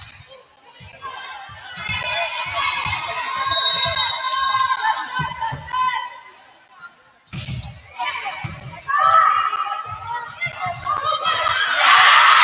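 Young women players call out to each other on the court.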